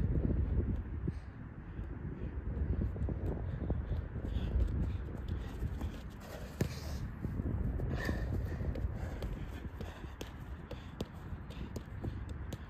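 A football is kicked with dull thuds.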